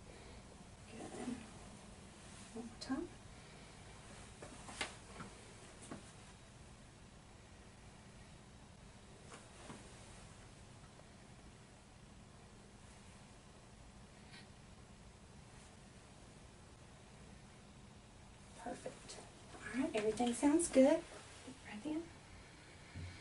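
A woman speaks calmly and briefly nearby.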